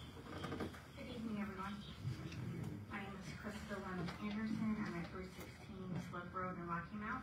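A woman speaks calmly into a microphone, heard through loudspeakers in an echoing room.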